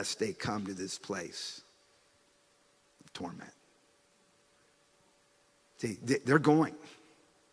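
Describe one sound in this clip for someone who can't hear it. A man speaks into a microphone in short, earnest phrases with long pauses.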